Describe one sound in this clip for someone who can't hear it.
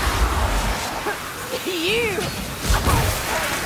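A monster lets out a wavering shriek.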